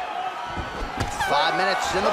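A bare foot kick thuds against a body.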